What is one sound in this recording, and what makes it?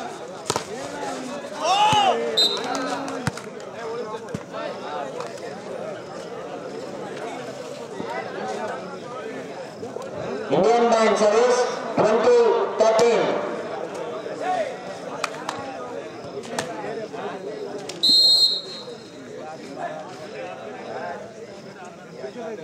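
A crowd murmurs and cheers outdoors.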